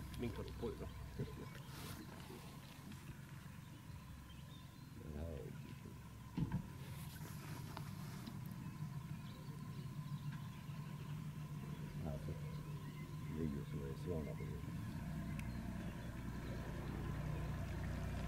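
Water laps gently against a small boat's hull.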